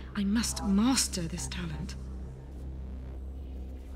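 A woman speaks calmly and quietly.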